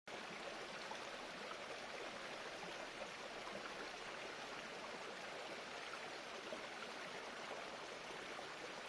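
A shallow stream gurgles and splashes steadily over rocks.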